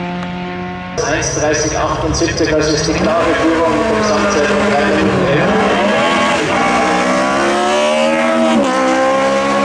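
A racing car engine revs and pops as the car pulls away from the start line.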